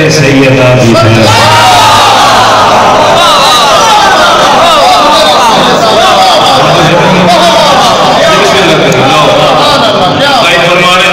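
A man chants in a rising, sung voice through a microphone.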